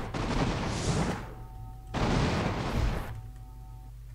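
Water splashes loudly in short bursts.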